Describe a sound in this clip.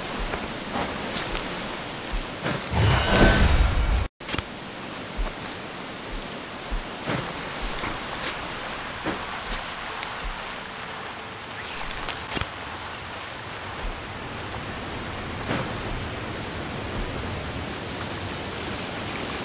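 A creature's bites crunch in short, sharp bursts again and again.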